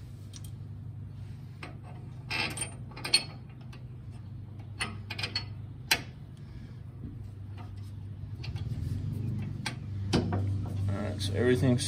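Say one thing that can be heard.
Metal parts click and clink as a hand works on a fastener.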